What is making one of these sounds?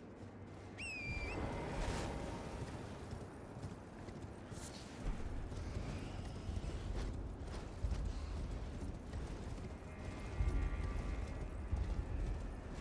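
Hooves gallop over stone.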